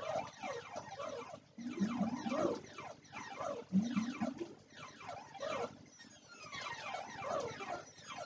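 Electronic explosions burst from an arcade game.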